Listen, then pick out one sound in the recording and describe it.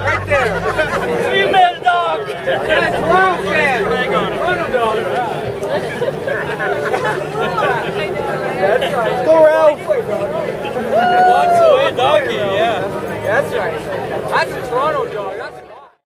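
A crowd of men and women chatter and call out loudly outdoors.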